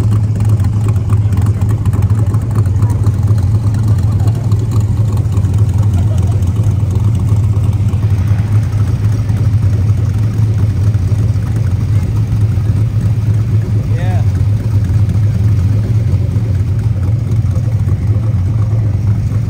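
A sports car engine rumbles deeply as the car rolls slowly past.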